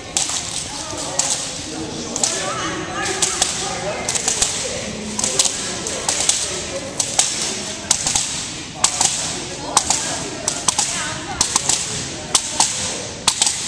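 Young women talk and call out in a large echoing hall.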